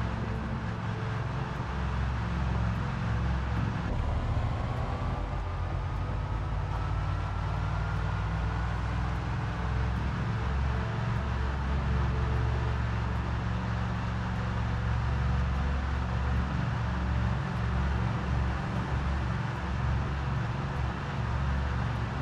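A truck engine drones low and steady as the truck drives along.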